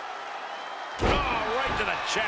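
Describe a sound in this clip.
A body slams heavily onto a wrestling mat with a loud thud.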